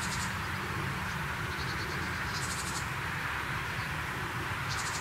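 A small bird chirps in short, quick trills nearby.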